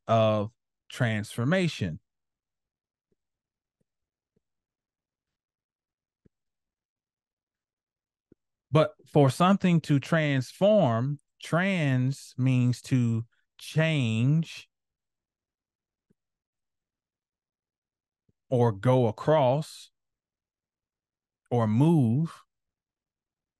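A woman speaks calmly through an online call microphone, in short phrases with pauses.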